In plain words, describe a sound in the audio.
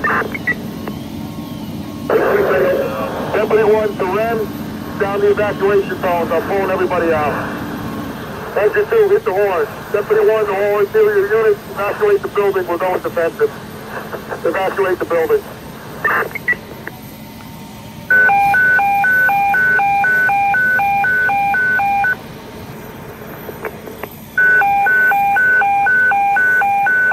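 A fire engine's motor idles with a steady low rumble.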